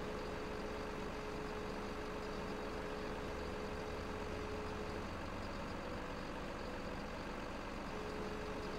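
A hydraulic arm whines as it swings a log.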